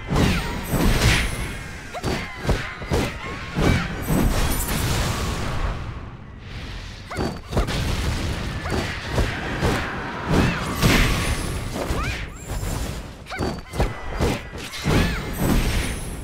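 Magic blasts burst with sharp whooshes.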